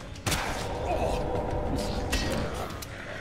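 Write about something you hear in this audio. Sharp blows strike a creature.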